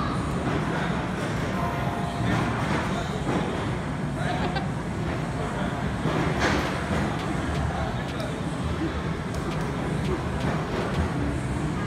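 Arcade machines beep and chime steadily.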